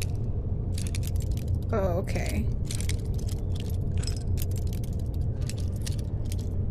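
A metal lockpick scrapes and clicks inside a lock.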